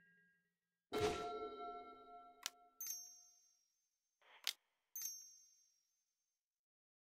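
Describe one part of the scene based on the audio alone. A bright, ringing chime swells and fades.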